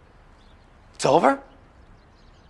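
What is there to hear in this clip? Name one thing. A middle-aged man speaks a short, rising exclamation close by.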